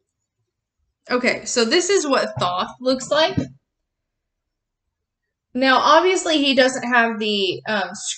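A woman speaks with animation close to the microphone.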